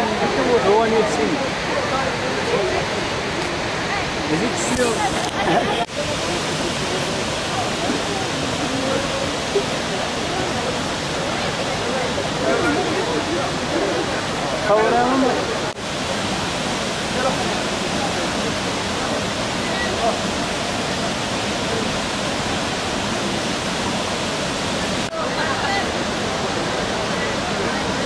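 A waterfall roars steadily, with water crashing into a pool.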